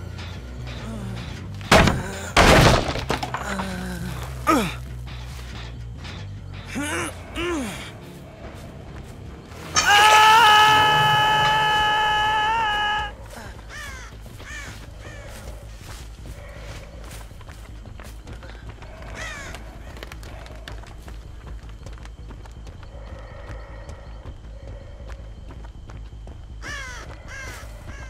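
Heavy footsteps tread steadily through grass.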